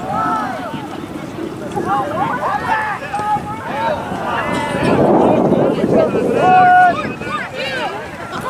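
Young players call and shout to each other across an open field.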